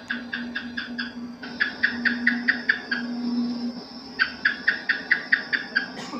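A gecko calls with a rapid series of sharp chirping clicks.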